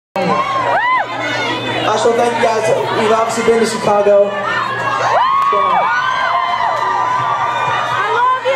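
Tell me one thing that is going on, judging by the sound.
Young men sing together into microphones over a loudspeaker system.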